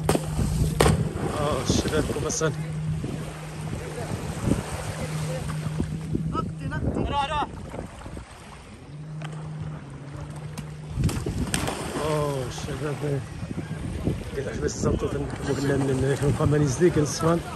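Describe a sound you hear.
Water splashes as a swimmer thrashes near the shore.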